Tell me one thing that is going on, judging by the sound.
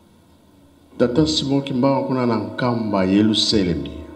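An elderly man speaks with feeling into a microphone through a loudspeaker.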